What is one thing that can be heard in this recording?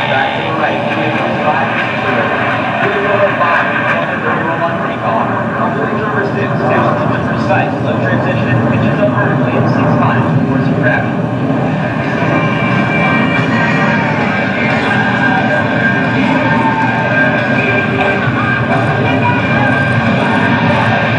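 A jet engine roars in the distance overhead.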